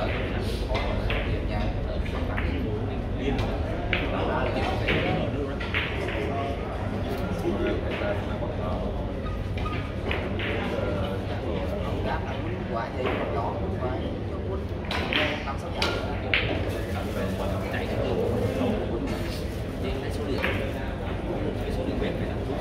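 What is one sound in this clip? A crowd murmurs in the background of a large room.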